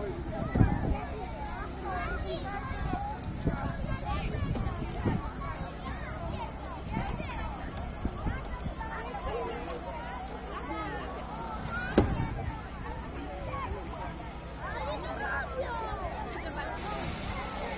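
Young children chatter and call out nearby outdoors.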